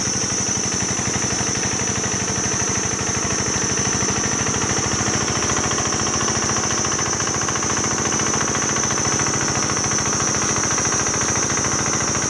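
A small diesel engine chugs steadily and loudly close by.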